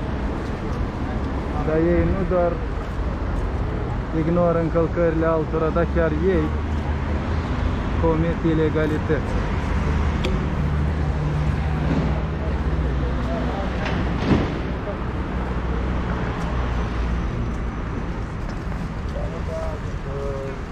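Footsteps of passers-by scuff on the pavement.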